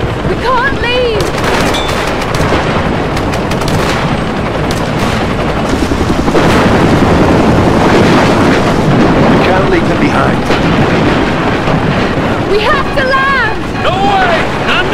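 A storm wind roars with heavy rain.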